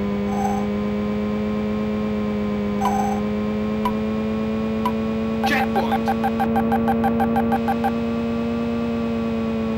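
A racing car's electronic engine drones steadily at high speed.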